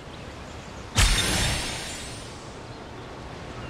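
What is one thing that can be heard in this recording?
A bright game whoosh bursts as prizes are collected.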